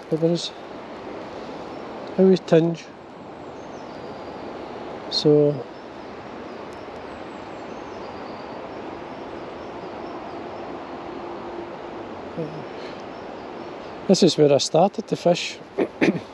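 A river flows gently and quietly outdoors.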